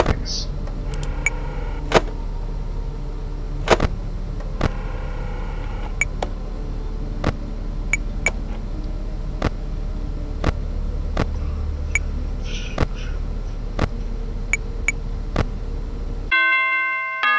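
Sharp electronic clicks sound again and again as the view switches.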